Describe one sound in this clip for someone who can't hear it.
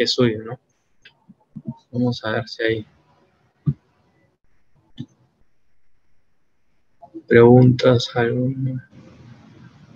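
A young man speaks calmly through an online call, in short bursts.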